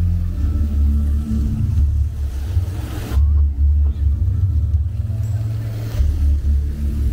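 Fountain jets splash and spray onto wet pavement nearby.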